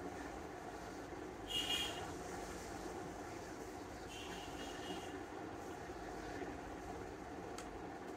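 Cloth rustles as it is folded by hand.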